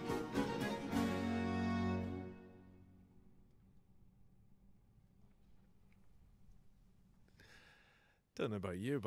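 A chamber ensemble of violins, harpsichord and lute plays a final chord that rings out and fades in a large hall.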